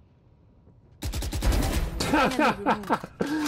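Gunshots ring out rapidly in a game.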